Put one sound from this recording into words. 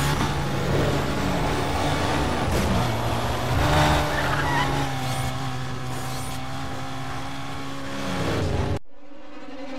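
Tyres hiss on the road at speed.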